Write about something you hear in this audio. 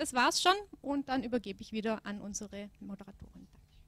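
A young woman speaks into a microphone.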